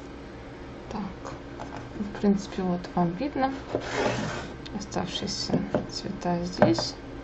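Small plastic jars knock and clatter on a wooden table.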